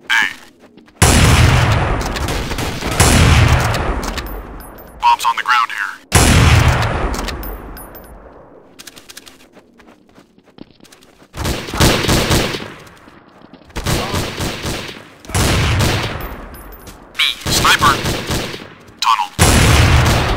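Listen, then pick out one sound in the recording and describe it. A sniper rifle fires loud booming shots that echo away.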